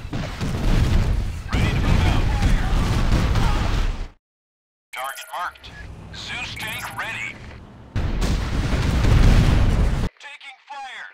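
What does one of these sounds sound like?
Explosions boom and rumble amid gunfire.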